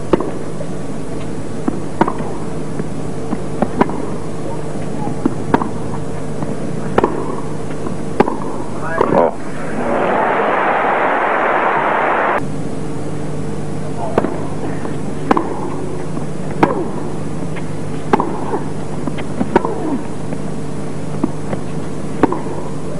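Tennis rackets strike a ball back and forth in a steady rally.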